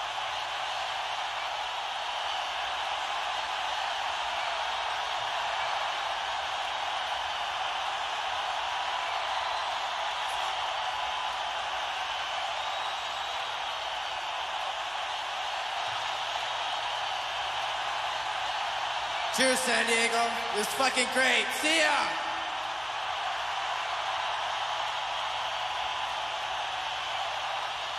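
A large crowd cheers and roars steadily in a big echoing hall.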